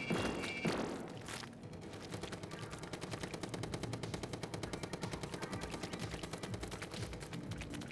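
An ink gun fires in rapid bursts with wet splatting.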